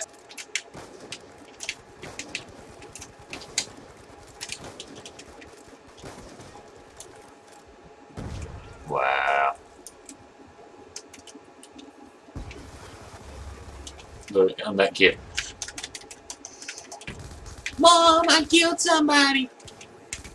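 Gunshots crack from a video game.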